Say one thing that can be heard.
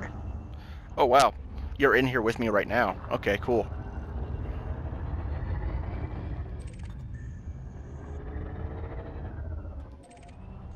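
A spacecraft engine hums with a low, steady rumble.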